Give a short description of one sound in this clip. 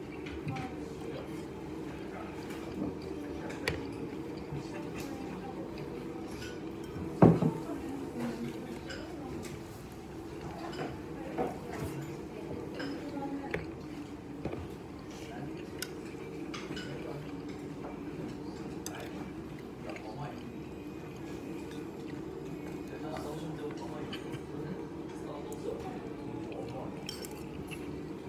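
Chopsticks click against a ceramic bowl.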